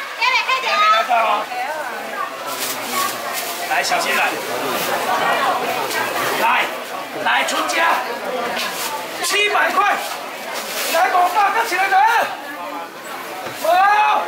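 Plastic baskets clatter on a wet counter.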